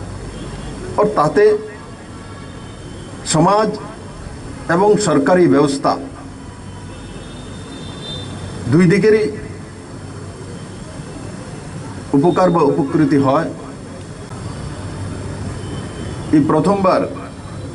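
A man speaks loudly into a microphone over a loudspeaker outdoors, in short bursts with long pauses.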